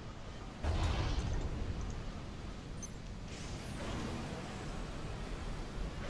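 Ship cannons fire with heavy booms.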